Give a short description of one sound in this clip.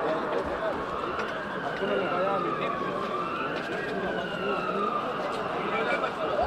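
A siren wails nearby, rising and falling.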